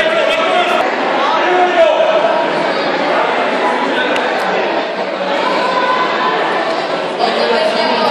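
A crowd of people chatter and call out in a large echoing hall.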